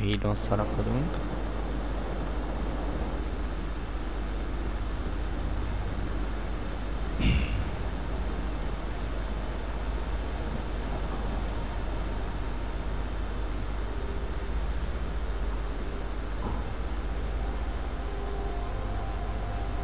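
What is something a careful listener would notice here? Wind blows steadily high up in the open air.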